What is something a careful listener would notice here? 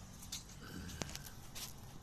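A man speaks close to the microphone.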